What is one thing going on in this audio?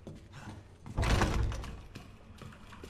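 A heavy wooden door swings open with a low thud.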